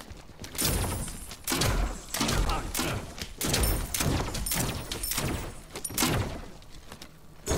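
Game weapons strike with sharp impacts.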